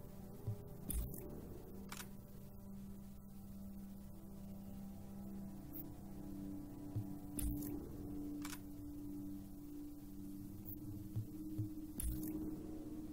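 Soft electronic menu clicks sound now and then.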